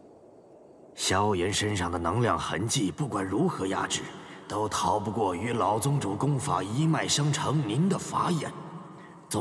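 A young man speaks calmly and closely.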